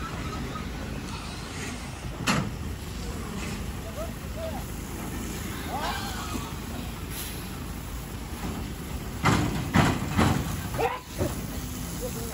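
Water sprays from a hose onto the ground.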